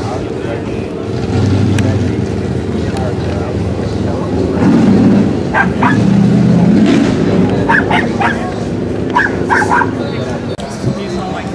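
Several men talk casually nearby in the open air.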